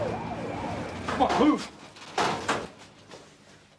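Paper money rustles in hands.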